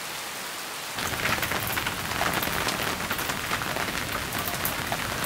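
Rain patters on an umbrella.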